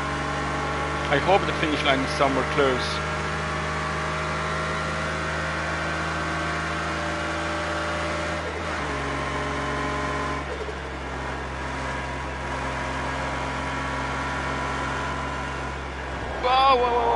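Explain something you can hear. A car engine drones steadily at speed, dropping in pitch as gears shift.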